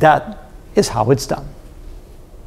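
A middle-aged man speaks briefly and with animation into a microphone.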